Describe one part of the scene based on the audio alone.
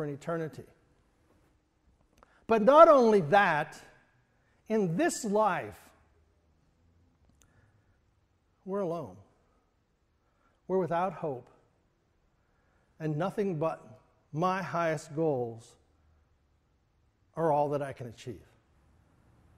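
A middle-aged man speaks with animation in short bursts, pausing often, in a room with some echo.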